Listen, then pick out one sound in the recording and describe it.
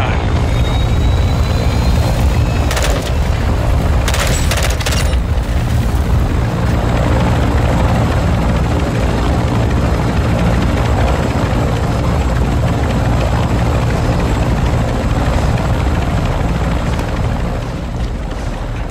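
An aircraft engine drones with a steady, deep roar.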